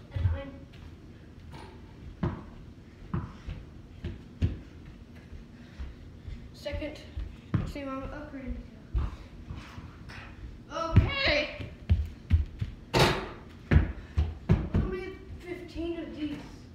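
A basketball thuds against a backboard.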